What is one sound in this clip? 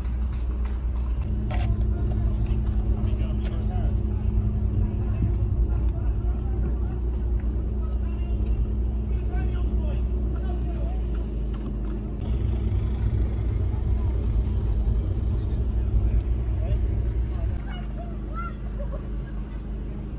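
A car engine hums steadily from inside the car, easing off near the end.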